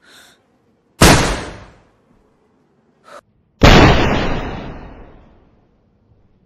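A shotgun fires twice, loud, with a ringing echo.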